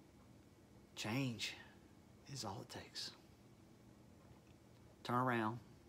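A middle-aged man speaks calmly and close by in short phrases.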